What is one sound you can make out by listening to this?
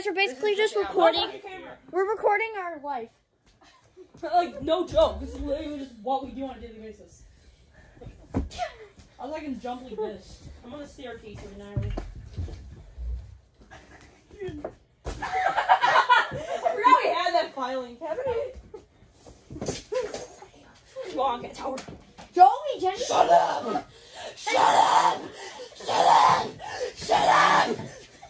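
Children talk and shout excitedly nearby.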